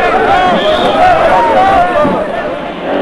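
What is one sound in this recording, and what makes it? A crowd of men shout and cheer loudly outdoors.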